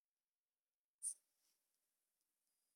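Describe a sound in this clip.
A slingshot snaps as a cartoon bird is launched.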